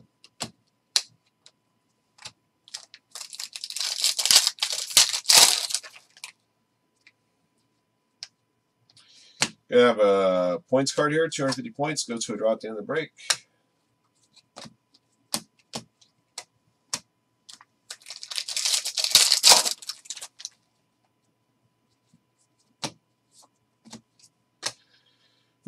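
Trading cards tap and flick against each other as they are sorted.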